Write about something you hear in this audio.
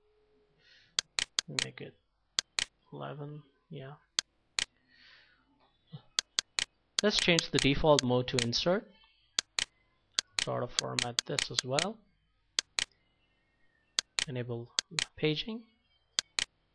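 A computer mouse clicks sharply several times.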